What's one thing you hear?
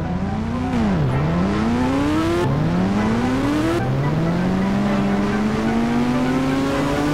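A motorcycle engine revs and shifts up through the gears.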